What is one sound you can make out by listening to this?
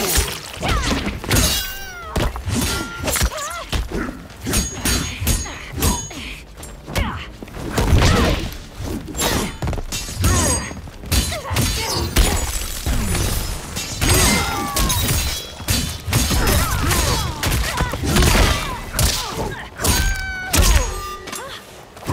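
Heavy punches and kicks land with sharp thuds.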